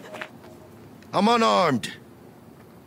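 A young man speaks tensely.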